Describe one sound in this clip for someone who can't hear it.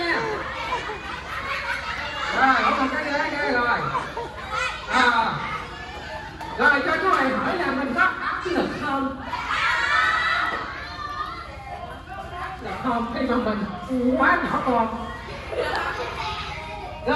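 Young children chatter and shout excitedly in a room.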